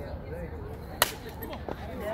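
A bat cracks against a ball once, outdoors.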